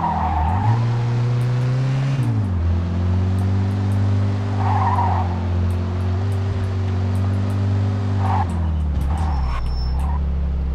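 A car engine hums steadily and shifts gears as it speeds along.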